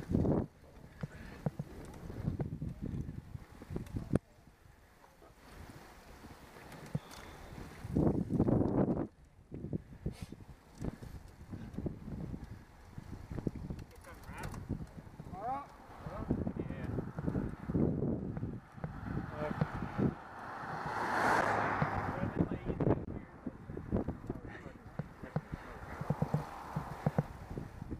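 Wind buffets the microphone in gusts outdoors.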